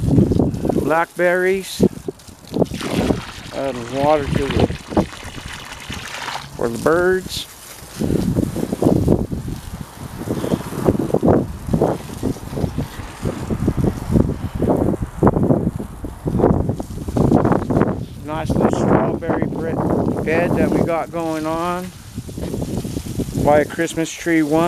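Water from a hose splashes onto the ground.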